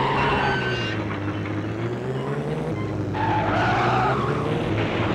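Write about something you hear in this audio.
A racing car's engine hums steadily, its pitch rising and falling.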